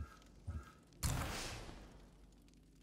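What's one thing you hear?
A deep whoosh swells and fades away.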